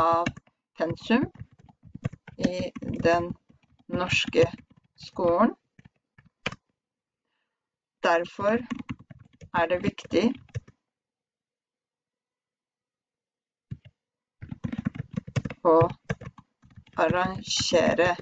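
A young woman speaks calmly and slowly into a headset microphone, pausing often.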